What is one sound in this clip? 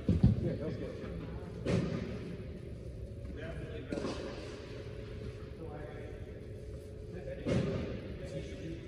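Tennis balls are struck with rackets, each hit echoing through a large indoor hall.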